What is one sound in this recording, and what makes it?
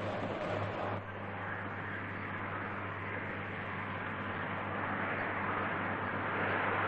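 Tractor engines drone in an open field.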